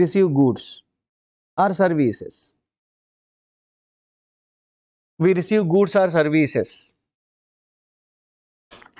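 A man speaks calmly and explains into a close microphone, with pauses.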